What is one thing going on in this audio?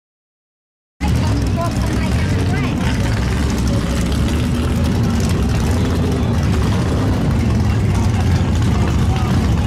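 A race car engine rumbles loudly at idle nearby.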